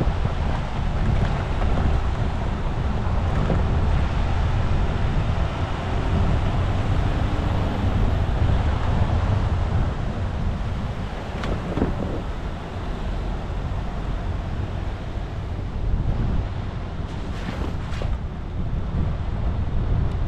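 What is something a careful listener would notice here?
A vehicle engine rumbles steadily as it drives slowly.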